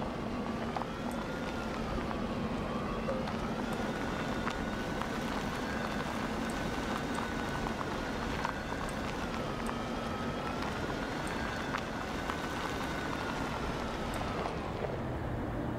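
Small clicks sound as a vehicle's wheels knock over bumps.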